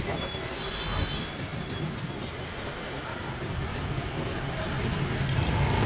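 A metal file scrapes back and forth across a key.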